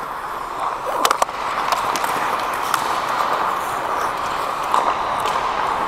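Hockey sticks clack against the ice and a puck.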